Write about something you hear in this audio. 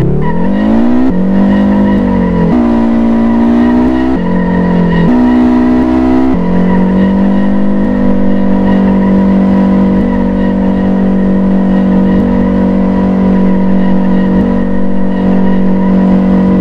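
A car engine revs high and shifts gears as it drifts.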